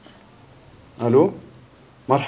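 A young man speaks into a telephone.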